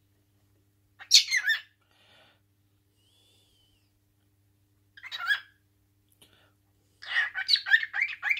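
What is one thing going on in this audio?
A cockatiel chirps and whistles loudly up close in short bursts.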